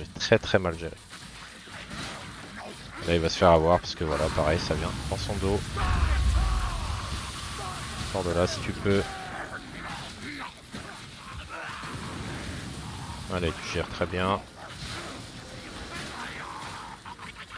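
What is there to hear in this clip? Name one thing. Blades clash and slash in combat.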